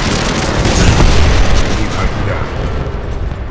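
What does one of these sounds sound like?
A large explosion booms and rumbles, then fades.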